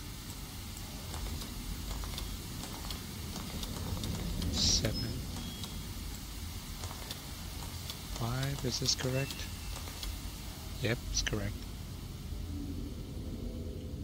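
Metal discs turn with a low grinding rumble and clicks.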